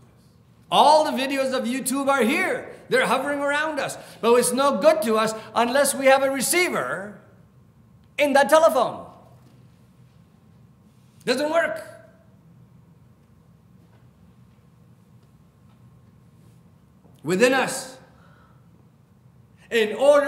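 A middle-aged man speaks with animation through a microphone, pausing often.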